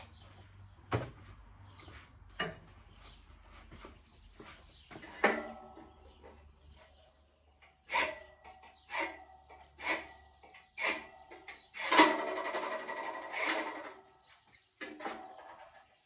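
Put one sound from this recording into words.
Metal clanks and knocks sharply several times.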